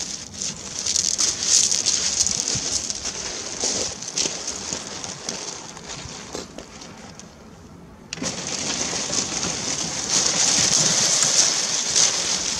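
Wheels roll and crunch over loose pebbles.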